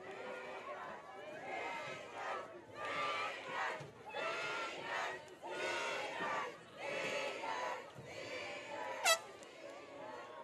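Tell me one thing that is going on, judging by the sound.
Young women sing through loudspeakers outdoors.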